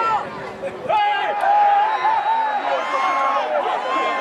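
A small crowd cheers and shouts in the open air.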